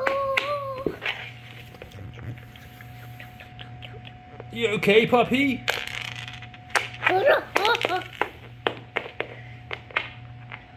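A small plastic toy taps and clicks on a wooden floor.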